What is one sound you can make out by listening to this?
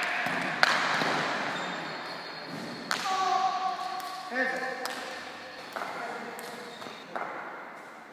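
A hard ball smacks against a wall and a wooden paddle, echoing loudly in a large hall.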